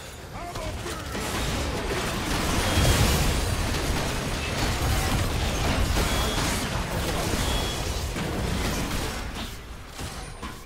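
Spell effects burst and crackle during a fight.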